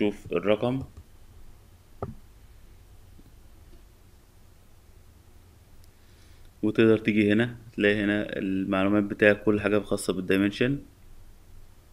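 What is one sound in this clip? A man speaks calmly into a microphone, explaining.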